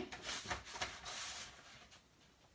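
Paper slides softly across a cutting board.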